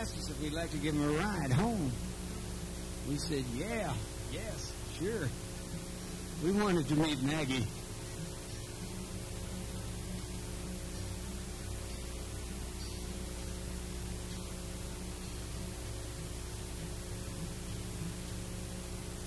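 An acoustic guitar is strummed through a microphone.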